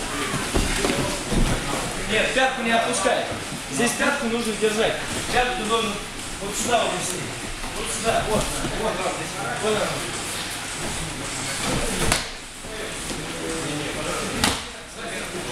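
Bodies thump onto a padded mat as men grapple.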